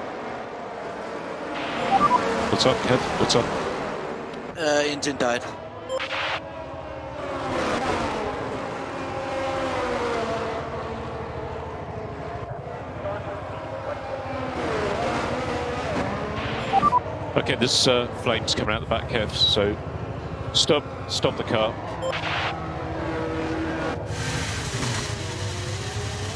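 A racing car engine whines and sputters as it slows.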